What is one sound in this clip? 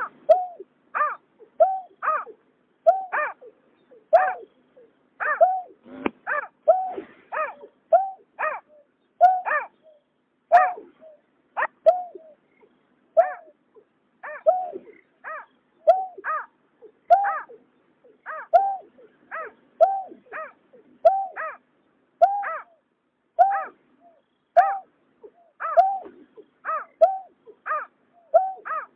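A bird gives repeated hollow, hooting calls in a quick rhythm.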